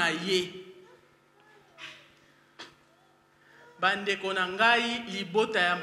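A woman speaks with feeling into a microphone, heard over a loudspeaker in an echoing hall.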